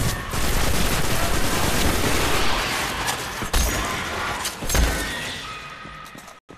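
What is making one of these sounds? Gunfire and explosions crackle loudly in a game.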